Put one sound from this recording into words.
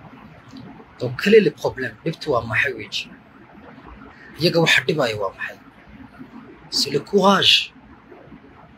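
A man speaks with animation, heard through a phone recording.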